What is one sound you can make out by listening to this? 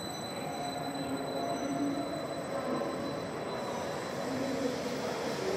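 A stationary train hums steadily beside an echoing platform.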